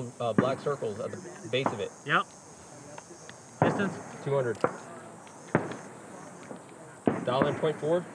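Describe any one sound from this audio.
A rifle fires sharp shots outdoors, one after another.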